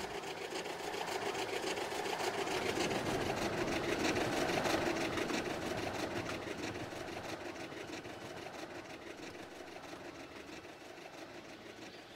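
A steam train rumbles along the tracks and fades into the distance.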